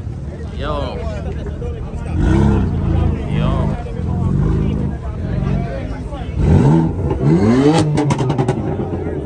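A car engine idles and revs loudly nearby.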